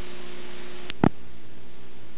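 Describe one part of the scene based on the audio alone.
A sharp click sounds as the playback breaks up.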